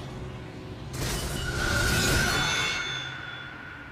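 A loud whoosh rushes past.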